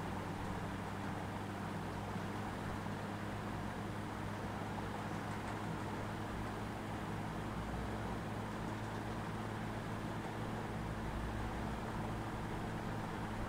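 An engine hums steadily as a vehicle drives along.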